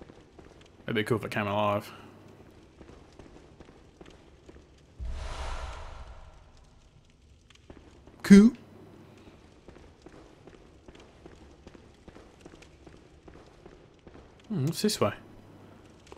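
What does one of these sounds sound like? A man speaks briefly and with animation into a close microphone.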